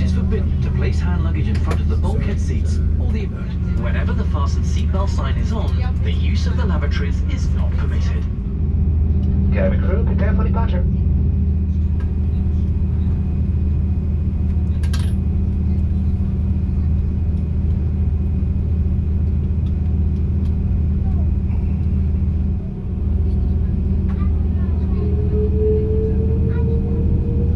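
The jet engines of an Airbus A330 hum low as it taxis, heard from inside the cabin.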